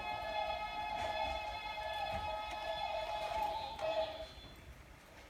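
A toy decoration plays a tinkling electronic tune, then stops.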